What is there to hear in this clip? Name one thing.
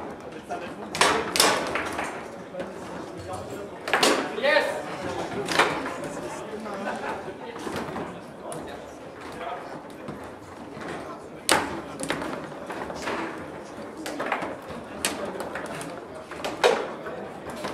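A foosball ball cracks sharply against rods and walls of a table.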